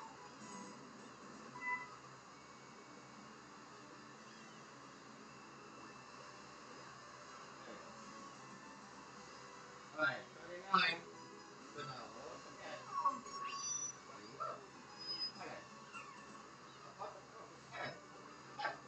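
Video game music plays from a television.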